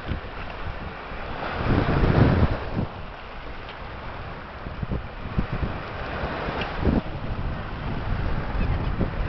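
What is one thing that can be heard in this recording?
Waves wash and break on a shore.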